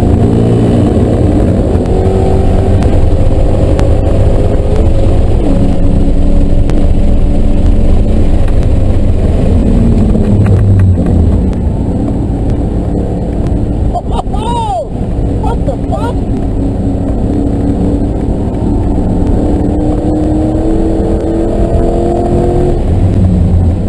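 A car engine roars loudly from inside the car, shifting gears as it speeds up and slows down.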